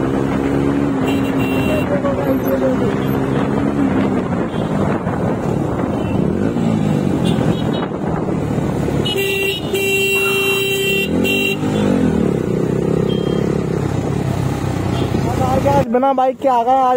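A motorcycle engine hums and rises and falls as the bike rides along.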